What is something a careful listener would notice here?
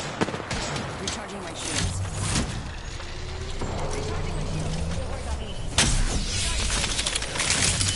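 An energy device whirs and crackles while charging.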